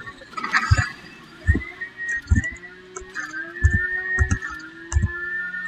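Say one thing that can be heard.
A racing car engine roars and revs up.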